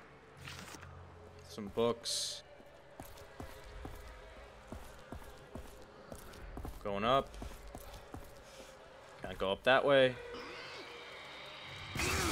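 Footsteps crunch over debris.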